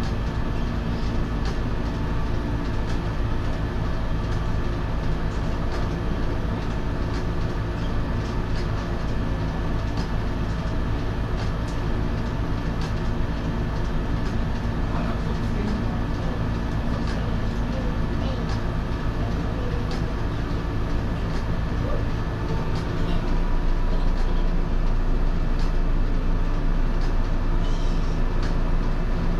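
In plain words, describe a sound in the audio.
A train's engine idles nearby with a steady, low hum.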